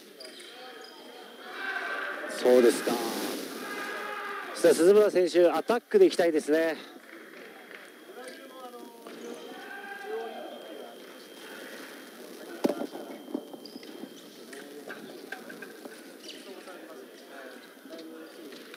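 Spectators murmur in the background.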